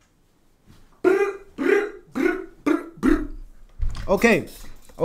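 A young man talks loudly and with animation close to a microphone.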